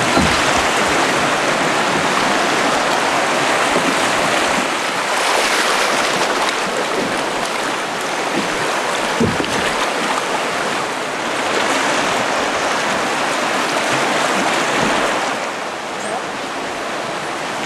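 River rapids rush and roar loudly close by.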